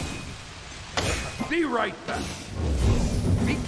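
A magical shield bursts open with a bright whoosh.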